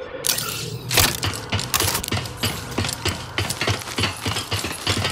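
Quick footsteps clatter on a metal walkway.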